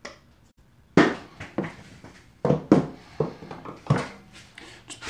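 Wooden pieces knock on a workbench.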